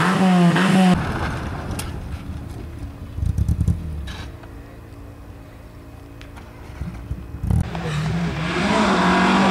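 A rally car's engine splutters and revs low as it slides on a rough track.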